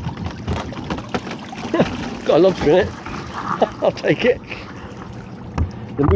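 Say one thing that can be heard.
A crab pot is hauled out of the sea, with water splashing and streaming off it.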